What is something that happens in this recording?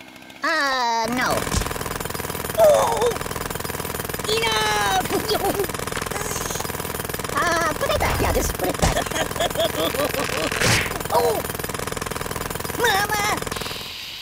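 A jackhammer hammers loudly.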